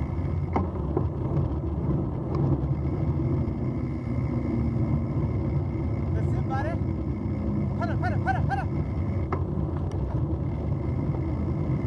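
Wind rumbles past as the bicycles ride along.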